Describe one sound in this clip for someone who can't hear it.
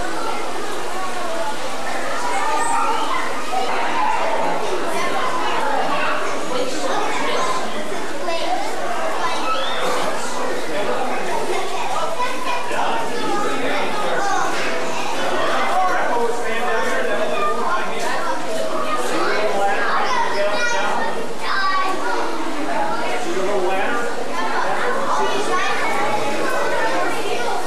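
Adults chatter nearby in an echoing hall.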